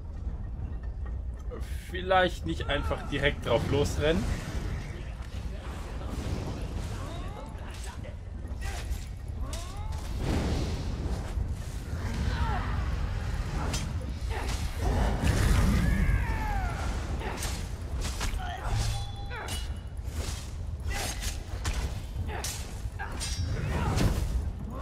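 Magic spells crackle and burst with sharp impacts.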